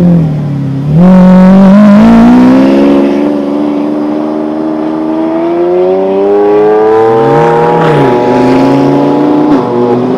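A sports car accelerates hard away with a rising engine roar.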